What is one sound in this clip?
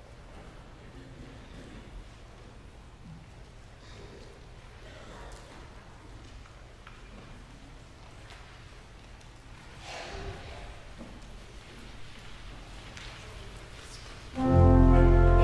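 A congregation murmurs and shuffles quietly in a large echoing hall.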